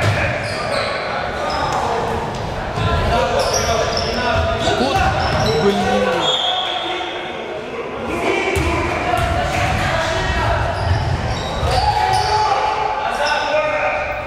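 A basketball thuds on the floor as players dribble.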